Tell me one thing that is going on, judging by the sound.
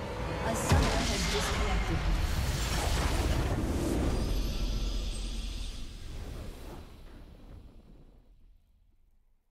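A game's victory fanfare bursts out loudly and slowly fades away.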